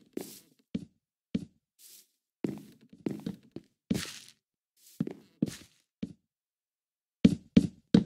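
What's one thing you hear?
Footsteps crunch on grass and gravel in short, uneven bursts.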